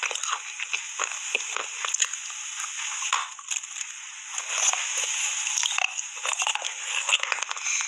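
Foil crinkles close by.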